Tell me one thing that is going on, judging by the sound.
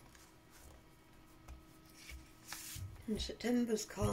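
Paper pages rustle and flip as they are handled.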